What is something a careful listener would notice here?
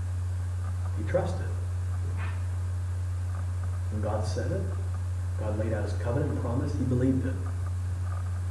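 A man speaks calmly, a little distant.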